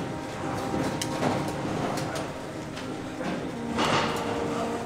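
A metal turnstile clacks as it turns.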